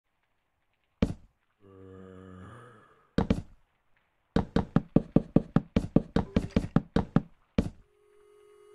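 Wooden blocks are set down with quick hollow knocks.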